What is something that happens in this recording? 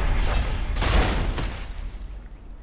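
A spinning shield whooshes through the air.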